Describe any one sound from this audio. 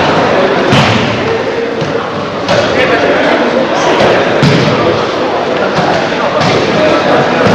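Bodies thud onto a padded mat again and again.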